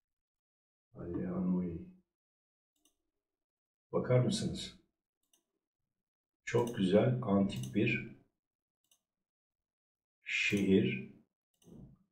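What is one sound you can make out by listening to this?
A young man speaks calmly into a close microphone, in short bursts.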